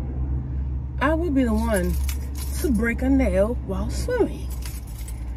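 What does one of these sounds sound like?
A young woman sings with feeling close by.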